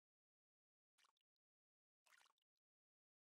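A fishing line whizzes out in a cast.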